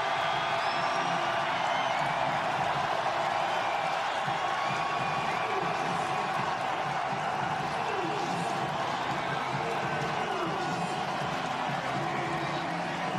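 A large stadium crowd roars and cheers loudly throughout.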